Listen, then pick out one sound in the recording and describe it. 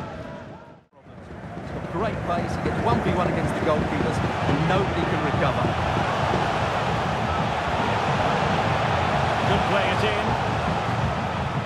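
A large stadium crowd roars and cheers steadily.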